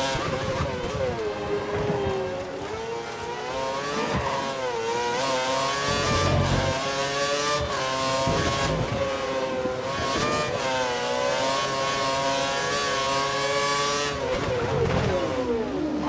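A racing car engine whines loudly, rising and falling in pitch as it shifts gears.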